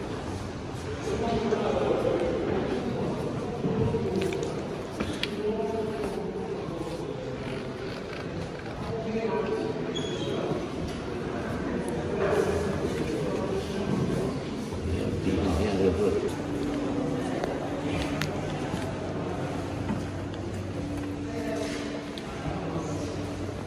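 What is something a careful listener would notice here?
A man speaks calmly close by in a large echoing hall.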